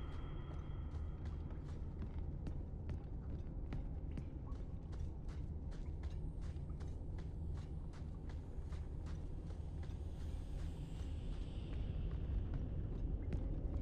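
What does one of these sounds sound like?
Footsteps tread at a steady walking pace.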